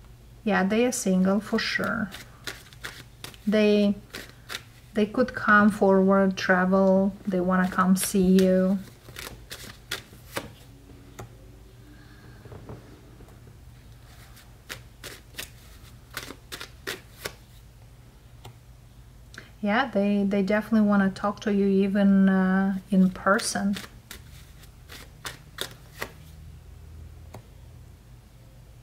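Playing cards tap and slide as they are laid down on a soft surface.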